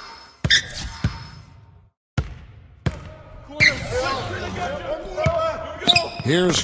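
A basketball bounces on a hard court.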